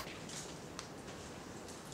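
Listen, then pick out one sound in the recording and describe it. Game pieces click softly on a board.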